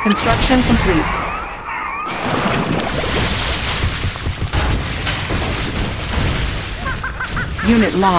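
Guns fire repeatedly in a battle.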